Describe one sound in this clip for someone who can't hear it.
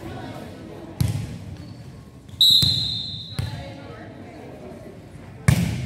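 A volleyball thumps on a hard floor in a large echoing gym.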